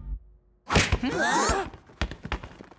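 A man screams in alarm.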